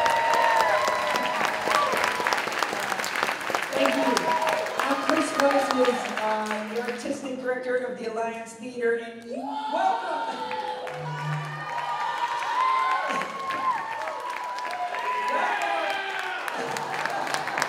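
A man speaks to an audience through a microphone in a large hall.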